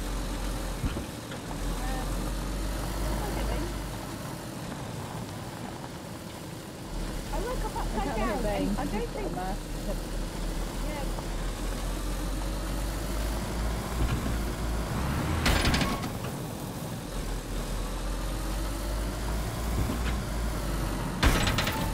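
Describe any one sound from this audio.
A car engine rumbles steadily as the car drives.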